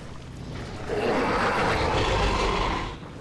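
A large animal splashes as it wades through water.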